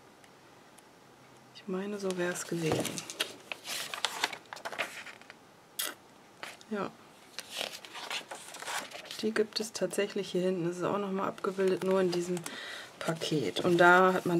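Glossy paper pages rustle and flap as they are turned.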